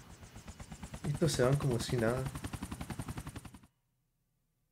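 A helicopter roars louder as it lifts off.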